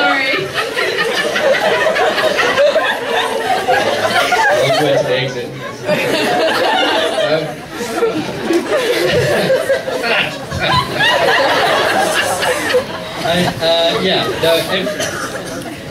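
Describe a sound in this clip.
A man speaks with animation through a microphone in a large hall.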